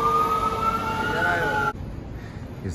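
A fire engine siren wails loudly and rises in pitch.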